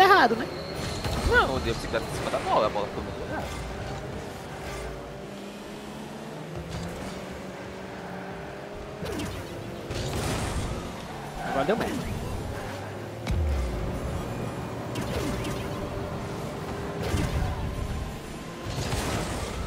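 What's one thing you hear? A car in a video game thumps into a ball.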